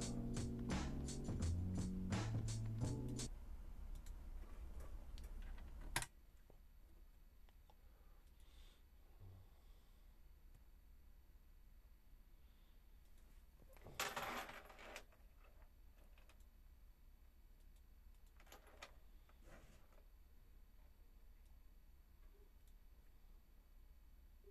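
Keys clack on a computer keyboard.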